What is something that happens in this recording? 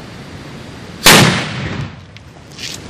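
A firework explodes with a loud bang.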